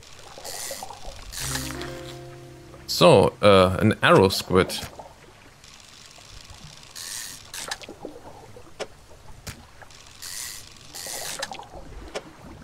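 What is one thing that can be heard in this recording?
Short bright chimes and whooshes sound as fish are caught.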